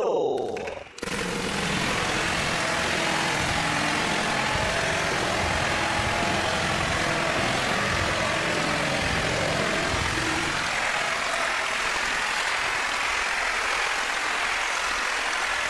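An audience applauds and cheers.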